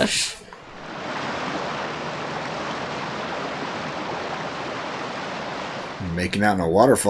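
Water rushes and roars over rocks.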